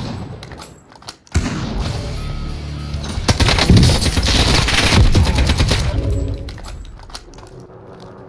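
A rifle clicks and clatters as it is reloaded.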